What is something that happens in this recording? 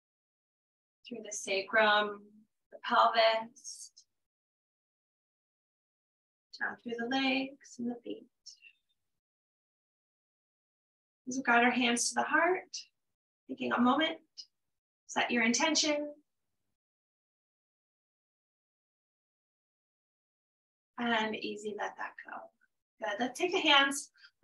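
A woman speaks calmly and softly through a microphone, with long pauses.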